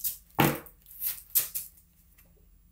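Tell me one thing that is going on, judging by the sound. Playing cards riffle and slap as they are shuffled close by.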